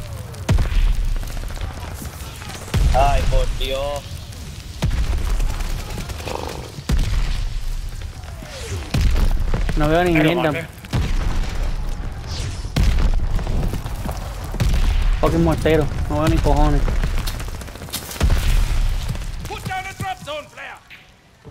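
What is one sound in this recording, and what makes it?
Explosions boom nearby with deep rumbling.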